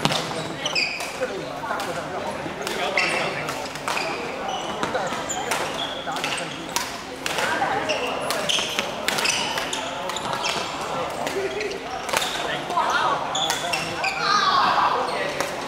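Shuttlecocks are struck with rackets with sharp pops, over and over, in a large echoing hall.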